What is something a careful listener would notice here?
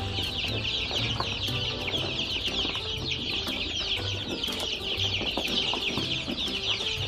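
Many chicks peep loudly and constantly.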